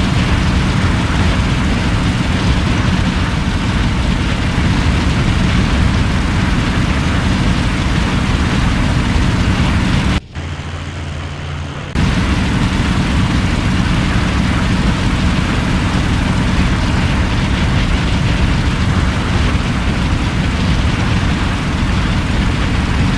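A propeller plane's engine drones loudly and steadily.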